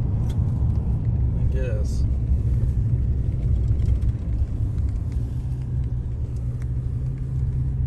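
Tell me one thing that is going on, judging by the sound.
A car engine hums and rumbles steadily while driving.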